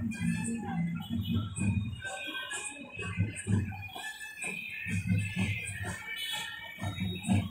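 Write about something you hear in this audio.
Traffic rumbles along a busy street.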